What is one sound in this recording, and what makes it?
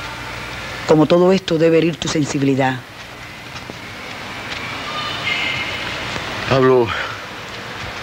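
A man answers from across the room.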